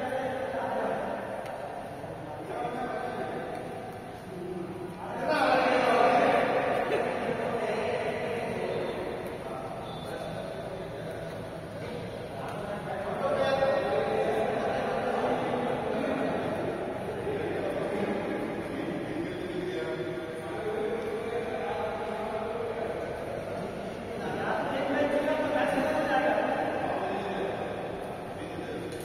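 Men talk and call out in an echoing hall.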